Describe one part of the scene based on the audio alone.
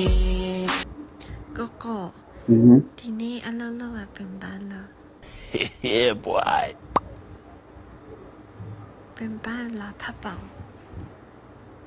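A young woman speaks softly through a phone.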